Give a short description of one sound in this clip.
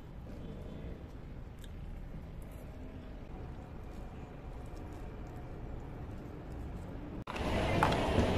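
A person crunches on lettuce while chewing.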